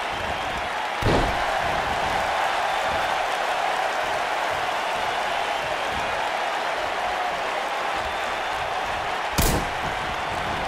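A body slams down hard onto a wrestling mat.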